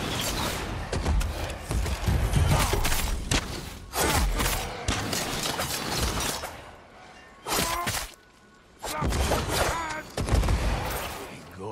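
Swords clash and slash in a fast fight.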